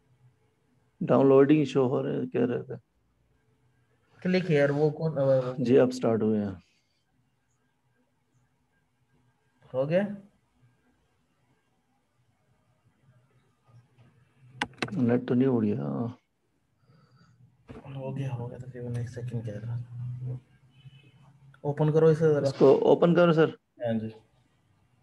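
A man speaks calmly, in short bursts with pauses.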